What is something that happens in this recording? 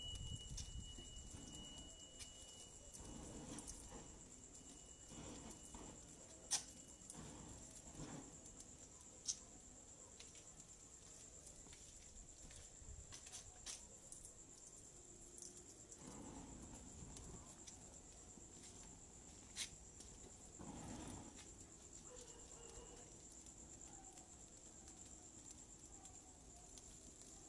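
Small flames flicker and crackle softly.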